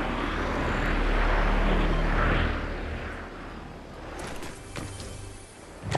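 Wind rushes past a glider in flight.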